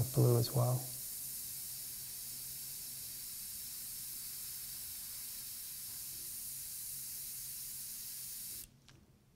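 An airbrush hisses steadily.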